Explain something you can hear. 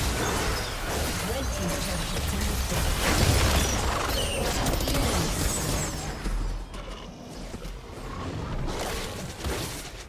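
Game spell effects crackle, whoosh and burst in a busy fight.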